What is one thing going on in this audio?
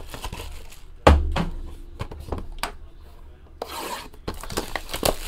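Hands rub and tap a cardboard box.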